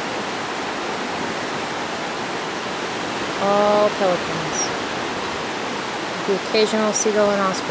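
Surf breaks and washes onto a beach.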